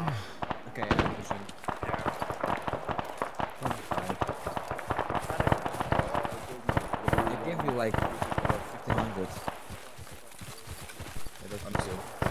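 Rifle shots crack repeatedly nearby.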